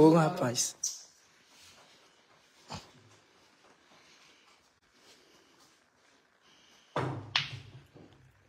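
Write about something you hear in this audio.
Pool balls click and knock together.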